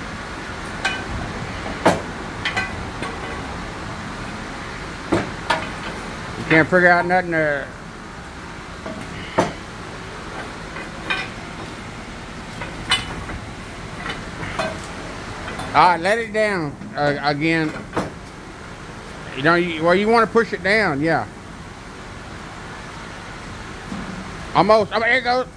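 Metal parts clink and knock now and then.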